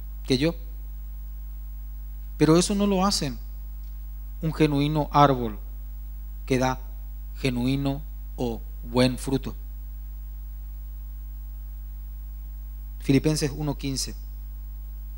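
A young man speaks calmly into a microphone, heard through loudspeakers in a large room.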